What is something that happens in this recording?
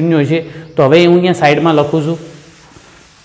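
A man speaks with animation, close and clear.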